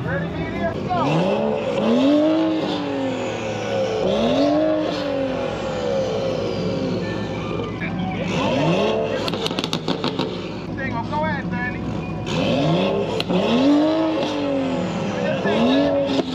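A car engine revs hard again and again, roaring up and falling back.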